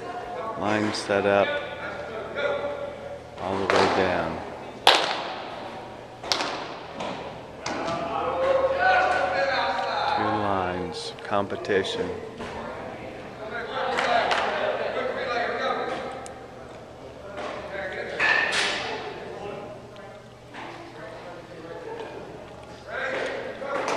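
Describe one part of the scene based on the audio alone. A man talks nearby, his voice echoing in a large hall.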